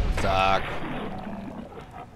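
A creature snarls and screeches.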